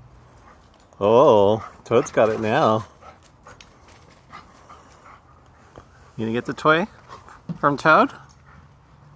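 A husky yowls and howls in play.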